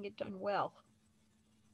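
An elderly woman speaks briefly over an online call.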